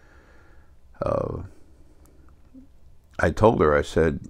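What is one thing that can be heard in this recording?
An older man speaks close to a microphone, in short bursts with pauses.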